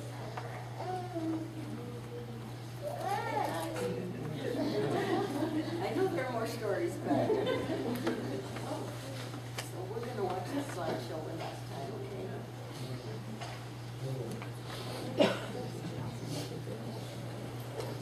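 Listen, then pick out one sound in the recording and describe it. Several adults talk quietly nearby in a room.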